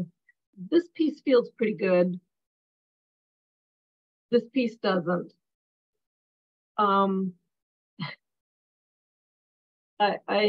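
An elderly woman speaks calmly in short phrases over an online call.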